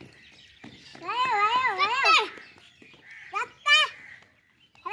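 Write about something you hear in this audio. A young child calls out in a high voice nearby.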